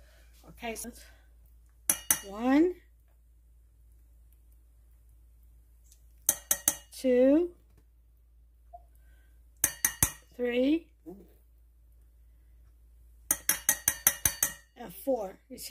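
A squeeze bottle sputters and squirts sauce in short bursts.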